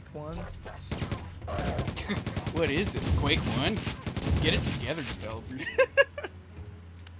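Gunfire bursts in quick shots.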